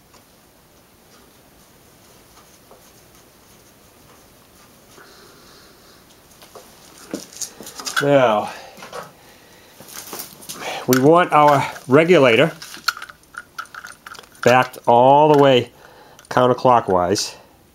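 Metal fittings click and scrape as they are screwed together.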